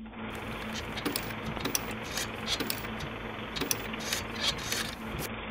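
Typewriter keys clack sharply against paper.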